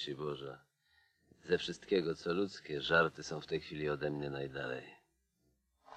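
A man speaks softly, close by.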